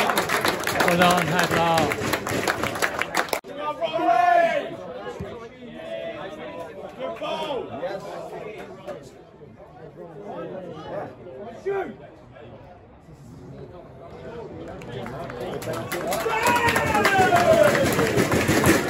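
A crowd of spectators shouts and cheers outdoors, swelling to a loud roar near the end.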